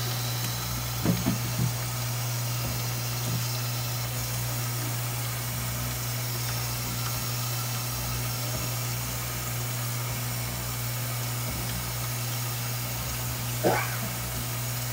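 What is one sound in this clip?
Wet squid slaps and knocks against a board.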